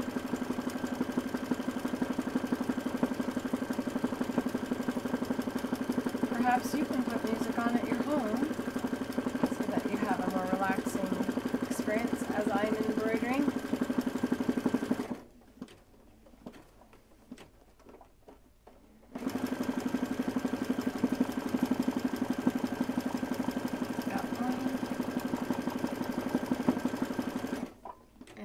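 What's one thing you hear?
An embroidery machine hums and rattles steadily as its needle stitches fast.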